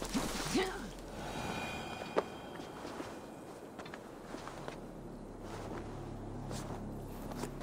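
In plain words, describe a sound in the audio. Hands and boots scrape and knock on stone during a climb.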